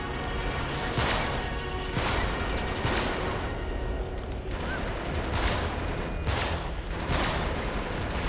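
Gunshots from a rifle crack in bursts.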